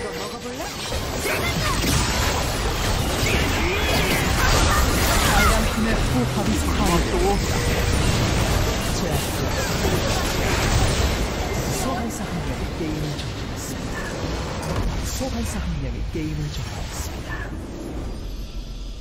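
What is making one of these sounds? Magic spells whoosh and crackle in a fast fantasy battle.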